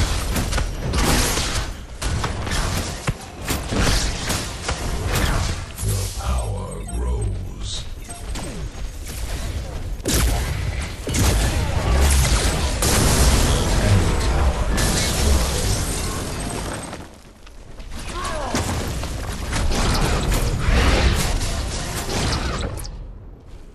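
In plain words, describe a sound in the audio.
Fiery explosions boom and crackle in rapid bursts.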